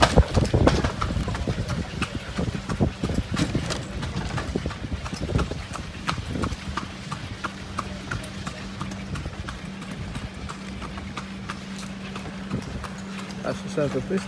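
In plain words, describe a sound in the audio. Carriage wheels rumble over the road.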